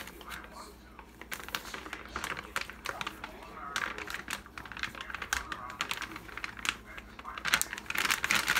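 Flour pours from a packet into a bowl.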